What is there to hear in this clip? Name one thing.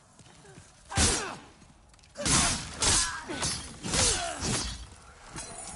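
A sword clashes and slashes in a fight.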